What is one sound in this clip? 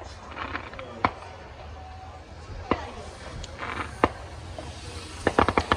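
Fireworks bang and crackle in the distance, outdoors on a still night.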